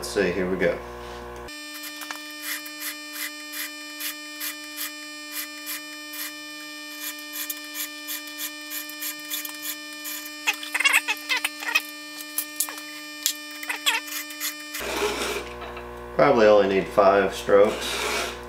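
A round file rasps across a chainsaw chain's teeth.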